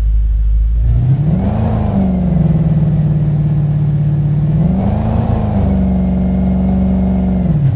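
A car engine revs up sharply twice.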